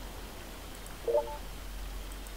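A short electronic chime sounds.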